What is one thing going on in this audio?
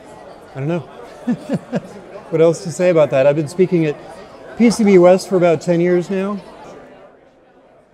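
A middle-aged man speaks calmly and cheerfully into a clip-on microphone, close by.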